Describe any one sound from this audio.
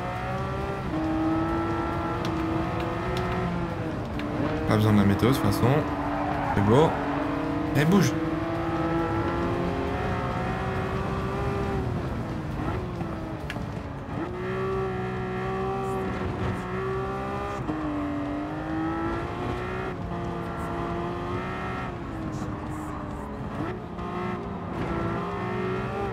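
A racing car engine roars, revving up and down through gear changes.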